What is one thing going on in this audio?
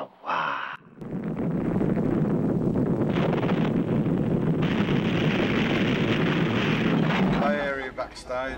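A huge explosion rumbles deeply.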